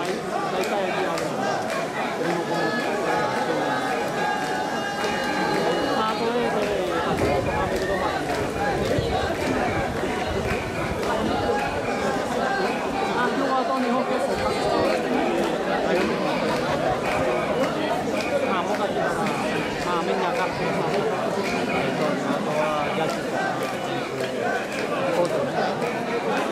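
A large crowd of men and women chants and shouts outdoors.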